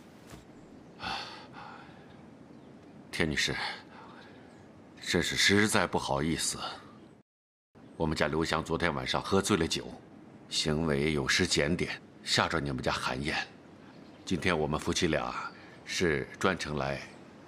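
A middle-aged man speaks calmly and seriously.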